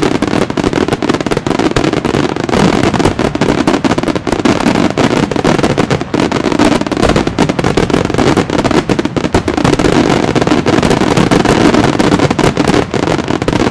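Fireworks bang and crackle in rapid bursts.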